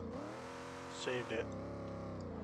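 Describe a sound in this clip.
Tyres squeal briefly on asphalt.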